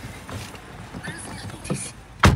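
A car door handle clicks from inside.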